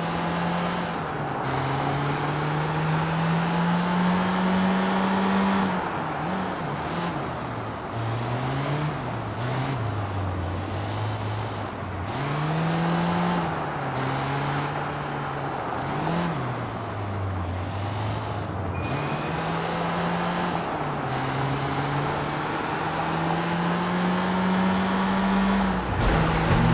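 A van engine hums and revs up and down as it drives.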